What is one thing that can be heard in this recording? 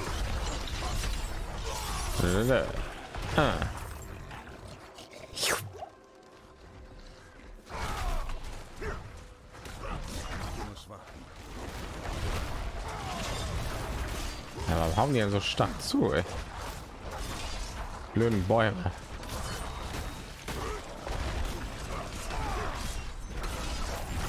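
Weapons clash and spells burst repeatedly in a fast fight.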